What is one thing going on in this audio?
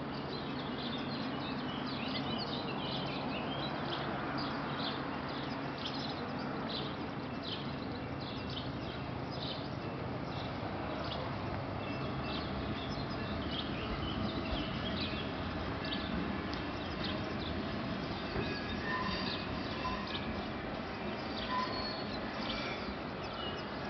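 A train's engine hums and rumbles steadily, pulling away.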